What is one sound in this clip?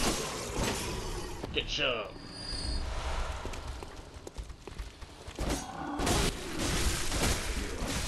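A gun fires with a sharp bang.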